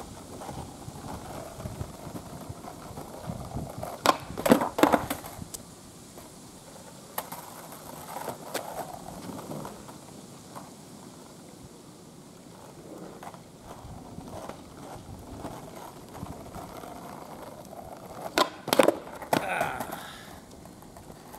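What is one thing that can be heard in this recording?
Skateboard wheels roll and rumble on rough asphalt.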